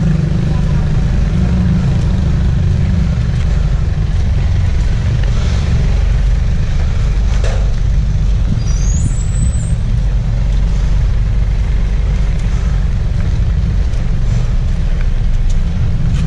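A small car's engine hums low as the car rolls slowly forward.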